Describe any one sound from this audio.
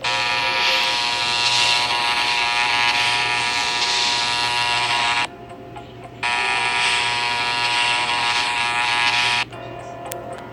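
An electric razor buzzes steadily, pausing briefly now and then.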